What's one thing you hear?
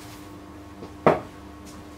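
A man sets a tool down with a knock.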